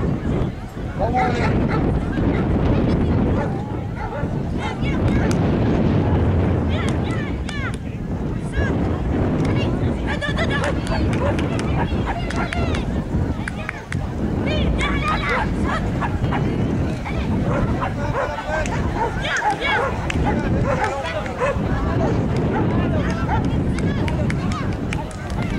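A woman calls out commands to a dog with animation.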